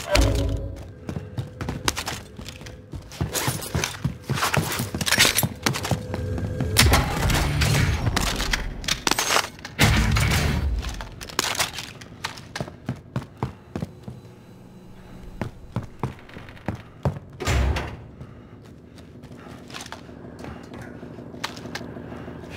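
Footsteps thud on a wooden floor indoors.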